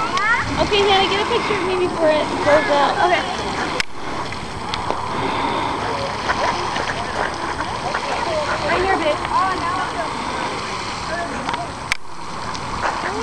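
A geyser's jet of water hisses and splashes steadily.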